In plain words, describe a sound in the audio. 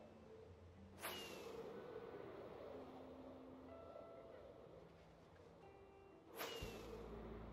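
A firework rocket launches with a sharp whoosh.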